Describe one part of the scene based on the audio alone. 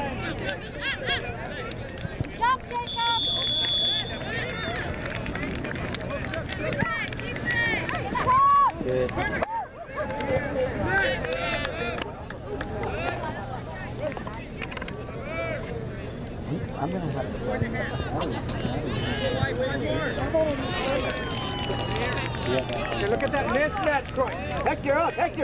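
A crowd of spectators chatters and cheers outdoors nearby.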